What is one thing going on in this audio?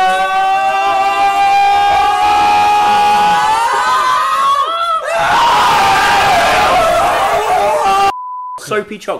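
Several young men scream and shout loudly close by.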